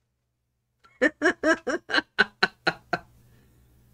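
A middle-aged man laughs heartily close by.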